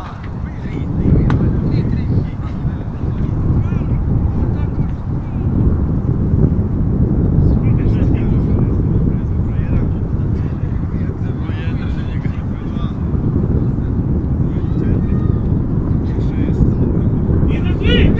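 Wind rumbles steadily across an open field.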